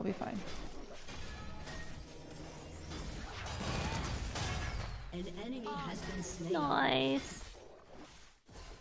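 Game sound effects clash and chime.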